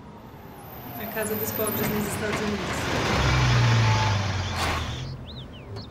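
A pickup truck engine rumbles as the truck pulls up and stops.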